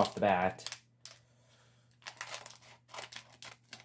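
Scissors snip through a plastic wrapper.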